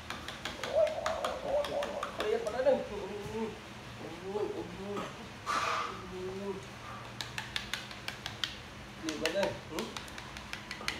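A man speaks softly and coaxingly close by.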